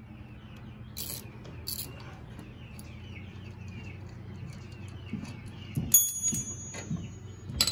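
Metal tools clink and knock against metal parts.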